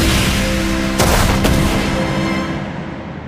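A ball is kicked hard.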